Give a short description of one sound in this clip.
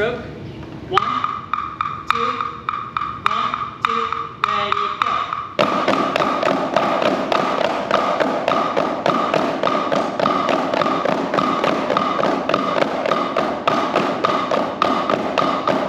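Children tap drumsticks on practice pads in a quick, steady rhythm.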